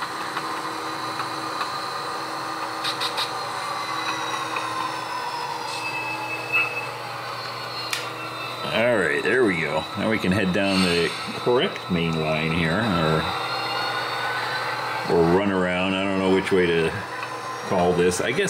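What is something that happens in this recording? A model train's motor whirs steadily as it rolls along the track.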